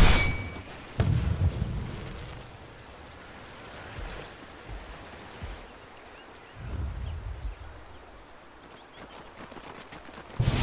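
Magic spell effects whoosh and crackle in a video game battle.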